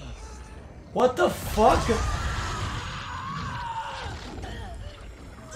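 A young woman screams in pain.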